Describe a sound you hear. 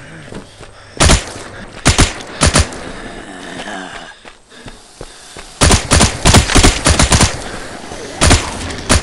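A submachine gun fires in short rapid bursts.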